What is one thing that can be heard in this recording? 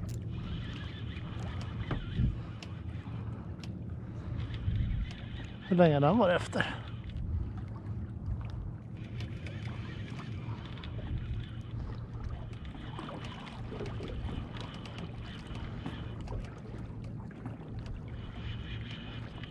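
Wind rumbles steadily outdoors over open water.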